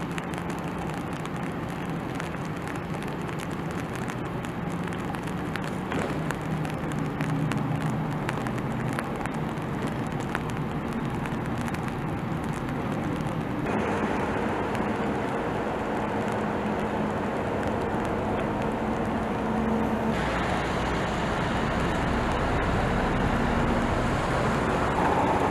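A tugboat engine rumbles and hums steadily nearby.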